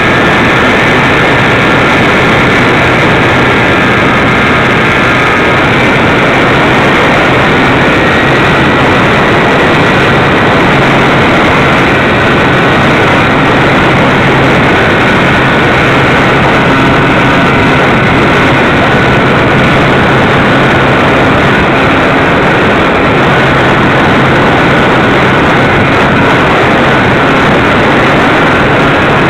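Wind rushes hard past the microphone.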